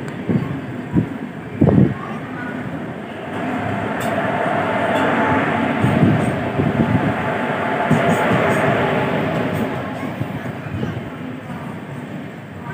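Train wheels clatter and thump over rail joints.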